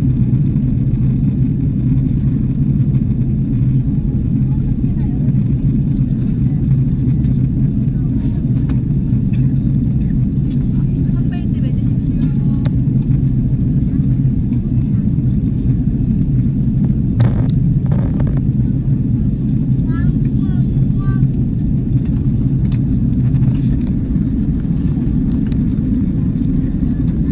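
Jet engines roar with a steady, deep rumble inside an airliner cabin.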